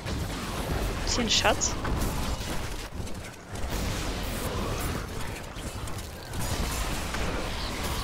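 Magic blasts and explosions crackle and boom in rapid bursts.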